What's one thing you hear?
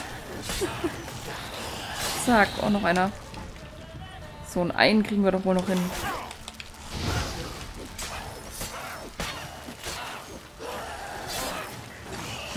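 A sword clangs and slashes in a fight.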